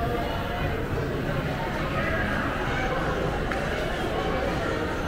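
A crowd of people chatter in a large echoing indoor space.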